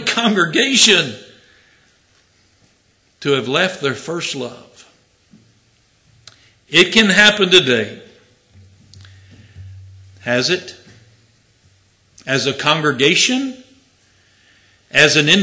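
An elderly man speaks slowly and firmly into a microphone, with long pauses.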